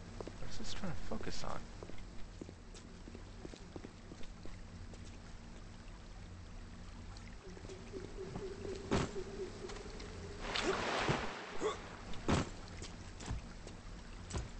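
A small waterfall splashes and gurgles steadily.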